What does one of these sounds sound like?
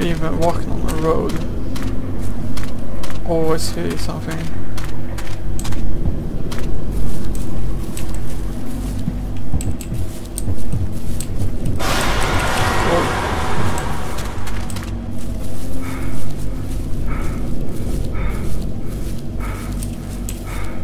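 Footsteps crunch steadily on grass and leaves.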